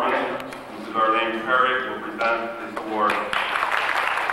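A woman announces through a loudspeaker in a large hall.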